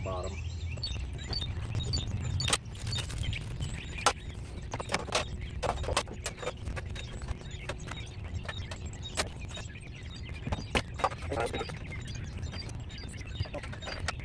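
Tools click and knock against a window frame.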